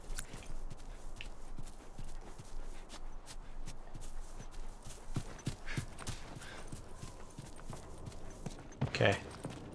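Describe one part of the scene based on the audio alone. Footsteps thud quickly across grass and floorboards.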